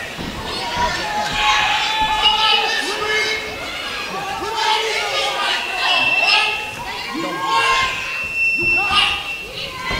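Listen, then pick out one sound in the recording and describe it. A man yells loudly and with animation close by.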